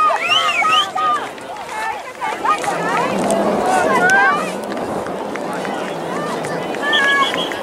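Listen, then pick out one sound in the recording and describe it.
A crowd of spectators chatters in the distance.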